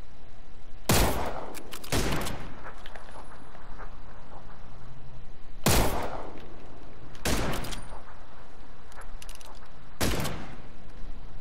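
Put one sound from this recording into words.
Rifle shots crack sharply, each followed by a short echo.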